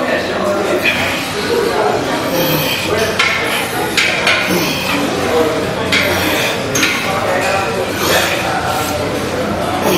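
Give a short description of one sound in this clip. A man grunts and strains with effort close by.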